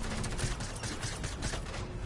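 A pickaxe swishes through the air.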